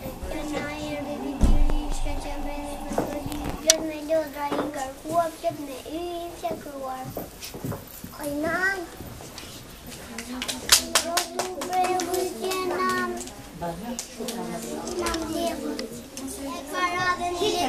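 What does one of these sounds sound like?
A young boy recites loudly and clearly, close by.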